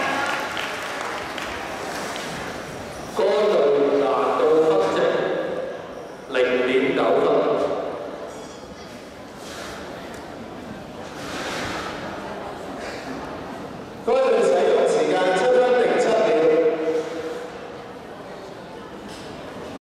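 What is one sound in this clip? Dancers' feet patter on a wooden floor in a large echoing hall.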